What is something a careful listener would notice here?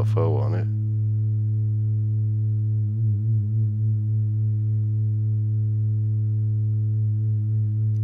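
A synthesizer drones with a low, steady buzzing tone that wavers now and then.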